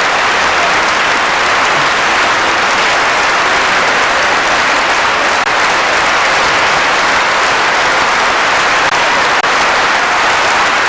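A large audience applauds steadily in an echoing hall.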